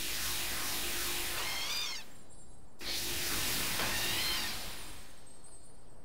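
A magic spell hisses and whooshes in loud bursts.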